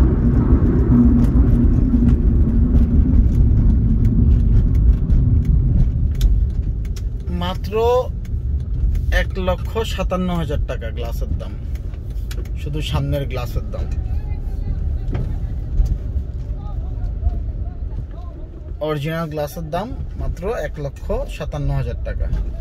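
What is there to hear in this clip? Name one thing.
A car engine hums and tyres rumble on a rough road, heard from inside the car.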